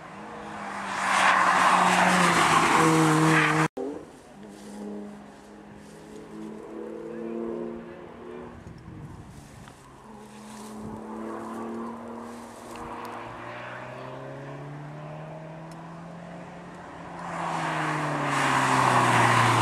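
Tyres hiss on the road as a car sweeps by.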